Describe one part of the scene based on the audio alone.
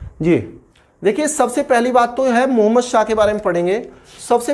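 A man speaks clearly and with animation, close by.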